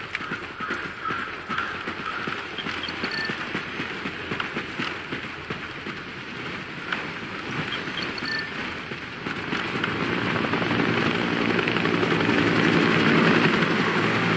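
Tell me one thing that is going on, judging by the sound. Footsteps crunch over dry leaves and grass.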